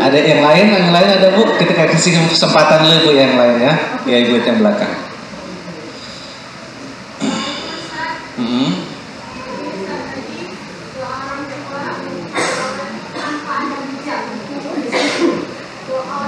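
A man speaks with animation into a microphone, close and amplified, in a room with some echo.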